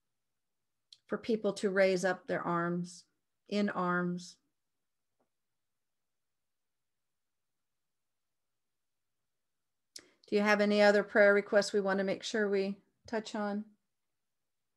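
A middle-aged woman speaks calmly and close to a microphone, with long pauses.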